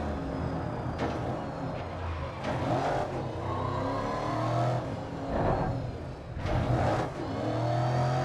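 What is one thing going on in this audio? Tyres screech and skid through a bend.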